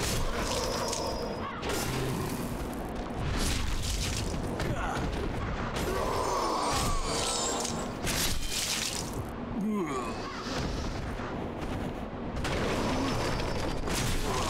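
Swords clash and slash in a fight.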